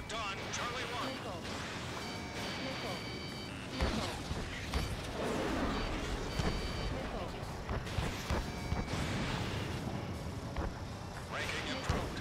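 Missiles whoosh past in bursts.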